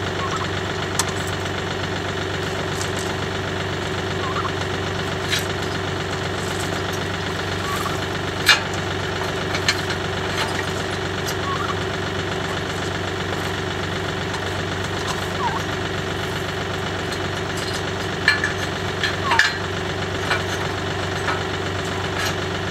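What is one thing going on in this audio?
Metal parts clink and clack.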